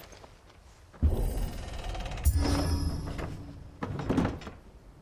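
A heavy wooden plank scrapes and knocks against a wooden wall.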